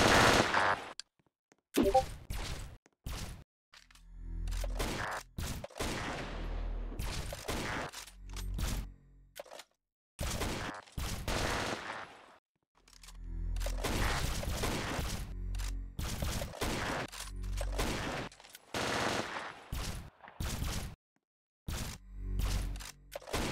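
Rifle shots crack out again and again, with a ringing echo.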